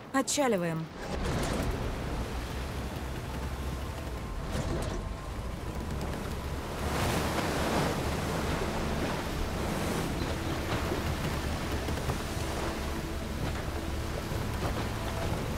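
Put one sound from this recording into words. Water sprays and splashes against a moving boat's hull.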